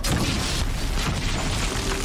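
A fire crackles and bursts with a rushing sound.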